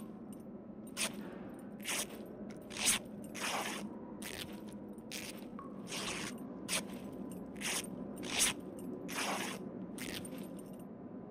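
Cloth rustles and tears in short bursts as a bandage is wrapped.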